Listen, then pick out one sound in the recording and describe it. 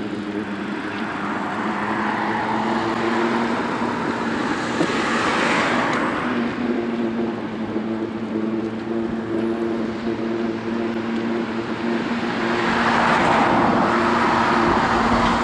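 A bicycle's tyres hum steadily on smooth pavement.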